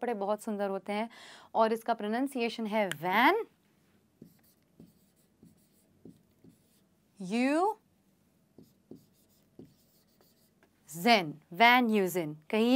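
A young woman speaks clearly and slowly into a nearby microphone, pronouncing words with care.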